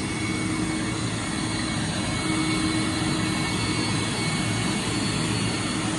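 A small pump motor hums steadily outdoors.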